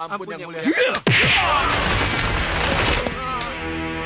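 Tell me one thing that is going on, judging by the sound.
Bodies crash and thud in a fight.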